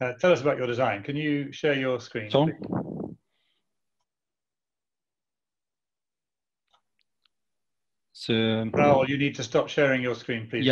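A man speaks calmly over an online call, pausing in between.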